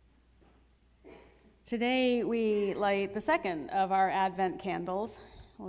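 A middle-aged woman sings in a clear, steady voice through a microphone.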